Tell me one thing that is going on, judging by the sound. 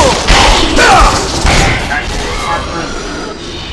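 Blades slash and strike in quick, loud bursts.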